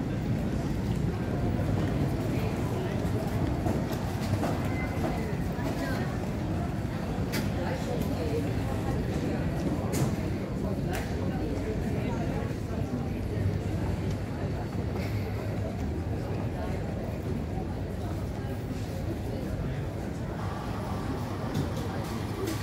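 A suitcase rolls on wheels across a hard floor.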